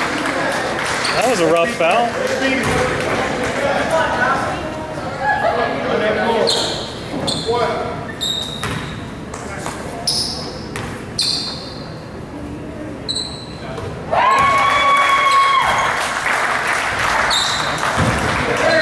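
Spectators talk in a large echoing gym.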